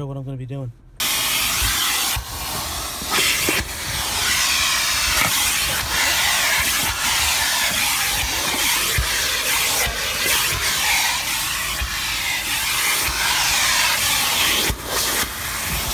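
A vacuum cleaner roars loudly and steadily up close.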